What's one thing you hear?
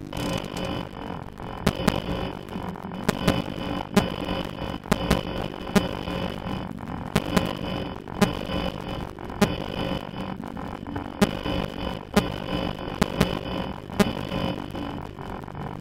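Electronic static hisses and crackles.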